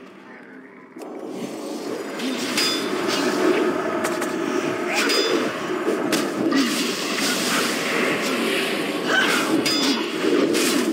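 Magic spells burst and crackle.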